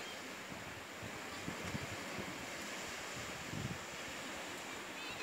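Small waves wash onto a sandy shore in the distance.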